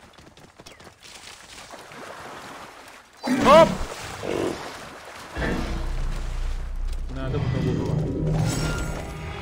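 Water splashes as a horse wades through a shallow river.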